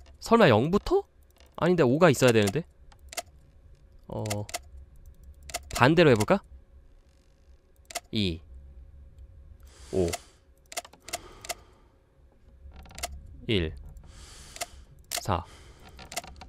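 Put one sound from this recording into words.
Sliders click into place on a wooden puzzle box.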